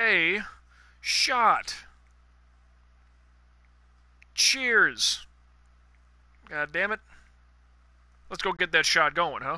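A man speaks animatedly into a close microphone in short bursts.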